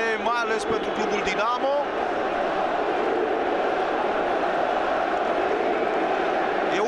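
A large stadium crowd roars and chants steadily in a wide open space.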